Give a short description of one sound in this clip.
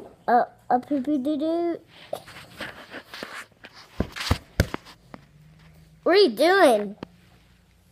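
A young boy talks and squeals playfully close by.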